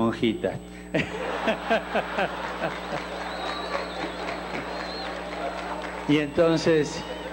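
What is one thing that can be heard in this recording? A crowd of women laughs and cheers.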